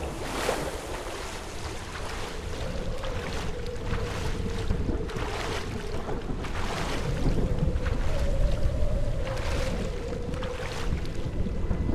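Water splashes as a swimmer paddles.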